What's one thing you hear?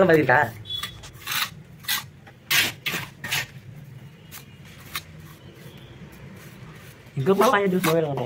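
A trowel scrapes and taps against wet cement.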